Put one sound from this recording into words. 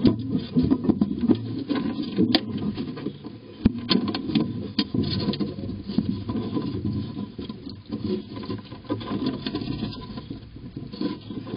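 Mice scratch and rustle in dry nesting material close by.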